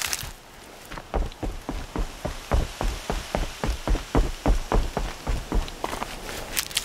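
Running footsteps thud quickly on wooden planks.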